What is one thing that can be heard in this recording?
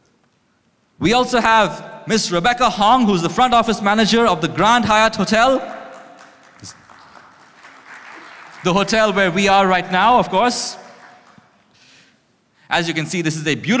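A man speaks with animation through a microphone and loudspeakers in a large hall.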